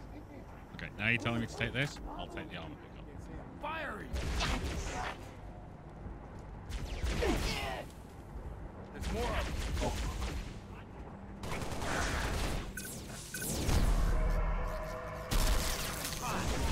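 Energy weapons fire in short bursts with sharp zaps.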